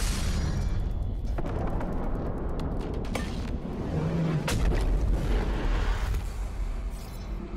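A deep rumble and crashing of falling rubble roars loudly, then eases off.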